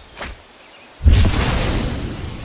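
A crackling magic burst sounds as a spell resolves.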